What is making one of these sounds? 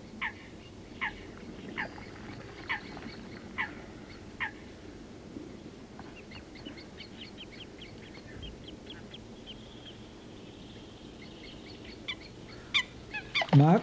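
A water bird calls with short, sharp chirps.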